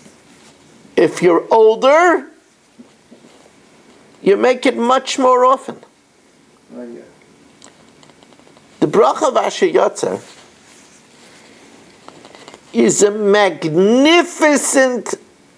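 An older man speaks close by in short bursts with pauses.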